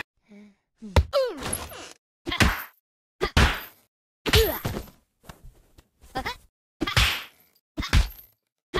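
A punching bag is struck with repeated thumps.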